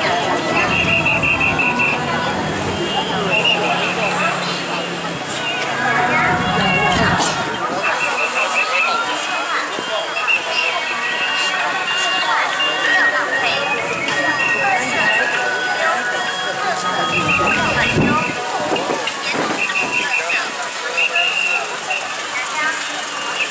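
A large crowd chatters loudly outdoors.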